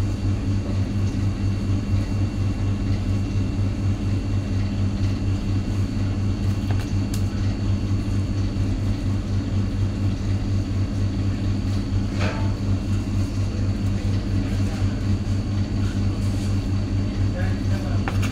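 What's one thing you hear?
A knife taps against a cutting board.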